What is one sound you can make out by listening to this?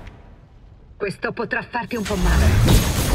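A woman speaks through a robotic, processed voice.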